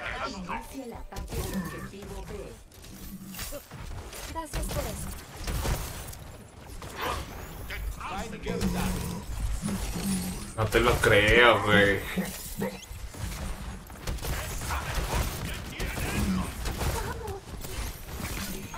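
Game weapons fire in rapid bursts.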